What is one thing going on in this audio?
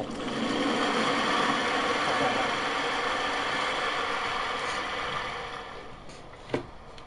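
A crowd applauds loudly, then the applause dies away.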